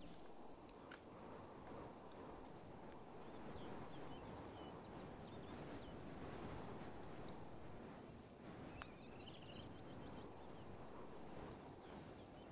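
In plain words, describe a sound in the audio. Waves wash softly onto a shore.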